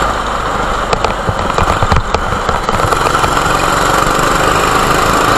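A go-kart engine buzzes loudly and steadily up close.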